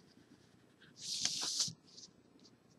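Paper rustles as a sheet is shifted.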